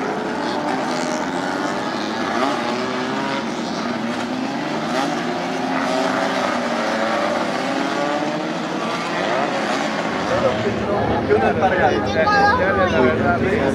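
Small race car engines rev and roar.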